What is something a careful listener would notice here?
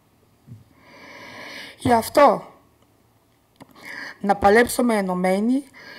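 An older woman speaks calmly into a microphone, with short pauses.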